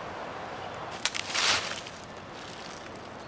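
Dry leaves rustle under a hand.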